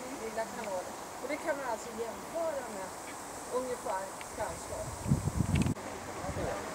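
Elderly men and women chat quietly nearby outdoors.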